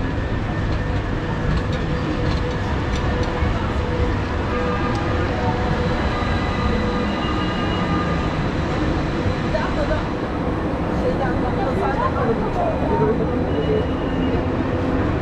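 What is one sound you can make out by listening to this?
A busy street crowd murmurs outdoors.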